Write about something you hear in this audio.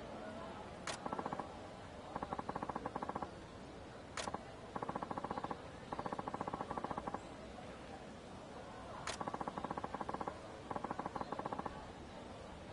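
Quick, high electronic blips chatter in short bursts.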